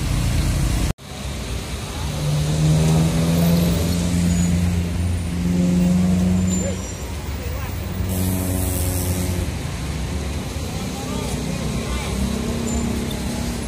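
A large bus engine idles close by with a deep hum.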